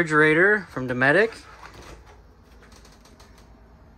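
A refrigerator door is pulled open.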